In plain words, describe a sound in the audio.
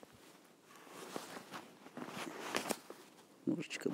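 Clothing rustles close by.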